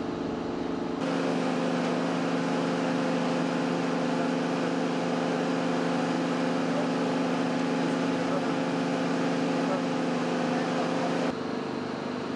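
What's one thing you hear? A heavy machine hums steadily.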